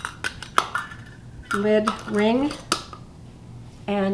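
A metal lid scrapes as it is screwed onto a glass jar.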